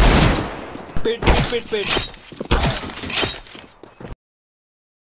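A knife slashes through the air.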